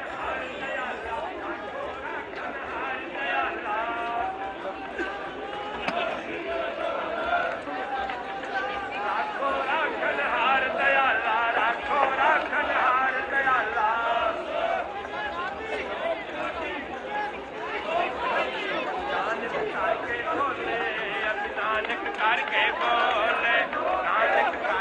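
A large crowd of men and women chatters and murmurs outdoors.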